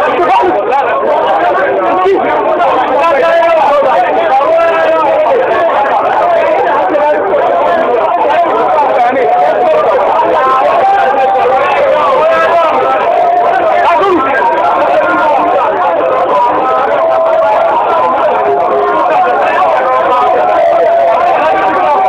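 A dense crowd of men chants and sings loudly together close by.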